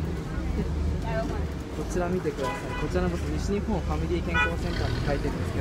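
Passengers talk nearby, young men's voices rising and falling.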